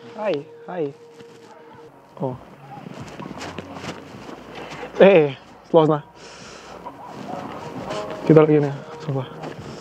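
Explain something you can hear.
A young man speaks with animation close by, outdoors.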